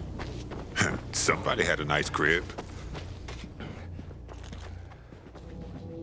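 Footsteps tread on a path.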